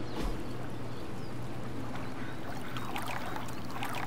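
Water laps and splashes softly as a woman dips her hand into a pool.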